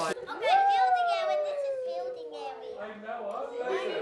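A young child makes a sound close by.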